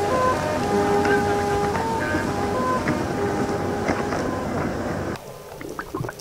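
Water rushes and splashes against a moving boat.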